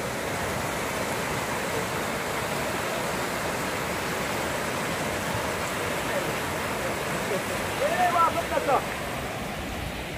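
A shallow river rushes loudly over rocks outdoors.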